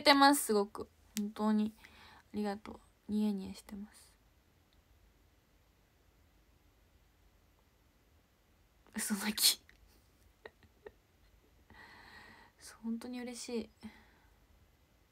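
A young woman talks playfully and close by, in short bursts with pauses.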